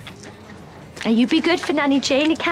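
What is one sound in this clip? A woman speaks tearfully close by.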